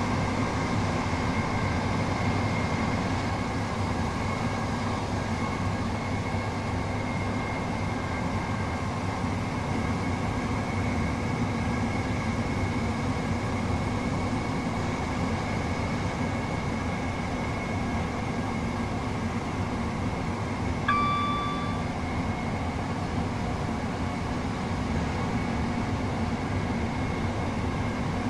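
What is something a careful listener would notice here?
A train rumbles and hums steadily along the track.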